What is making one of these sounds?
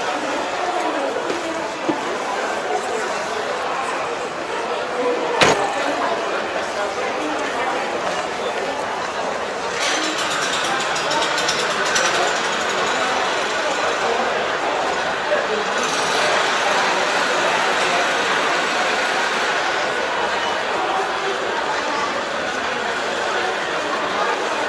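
A crowd of people chatters steadily in the background.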